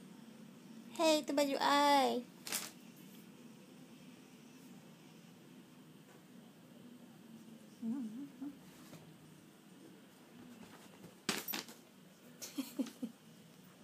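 A kitten meows loudly.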